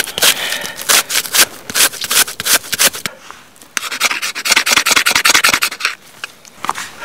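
A knife scrapes and shaves dry wood in quick strokes.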